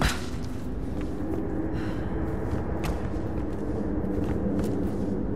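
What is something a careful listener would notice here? Footsteps scuff slowly on a stone floor.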